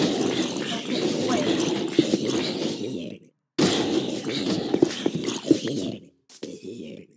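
Blocks crumble and break with loud, noisy crashing.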